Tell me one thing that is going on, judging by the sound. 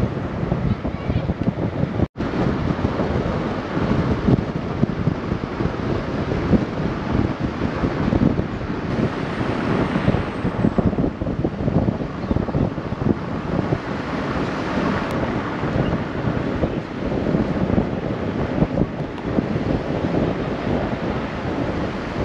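Wind buffets and rumbles against a moving vehicle.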